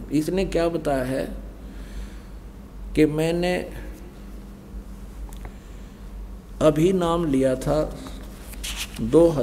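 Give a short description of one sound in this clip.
An older man speaks slowly and calmly into a microphone, with long pauses.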